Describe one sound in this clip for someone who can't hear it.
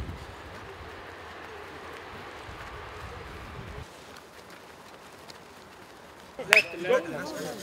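Footsteps thud softly on grass as several men jog.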